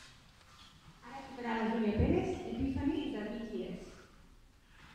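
A woman speaks calmly through a microphone in a hall.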